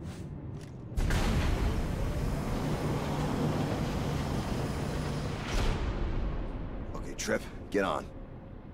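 A heavy metal platform rumbles and grinds as it slides into place.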